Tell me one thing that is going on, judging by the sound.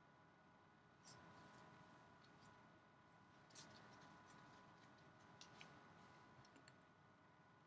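Trading cards rustle and click as they are handled.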